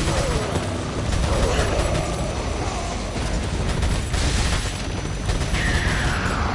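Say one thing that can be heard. A rifle fires rapid shots that echo.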